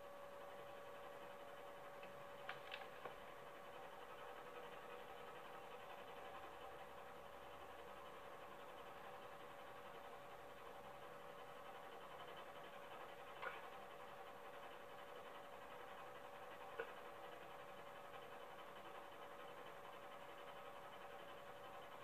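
Video game sound plays through a small television's speakers.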